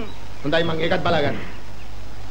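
A man speaks briefly.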